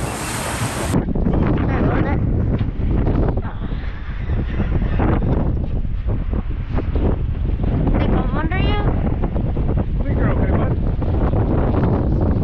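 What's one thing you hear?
Choppy seawater splashes against a boat's hull.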